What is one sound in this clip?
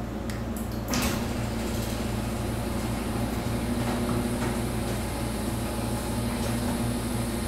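A garage door rattles as it rolls up along its tracks.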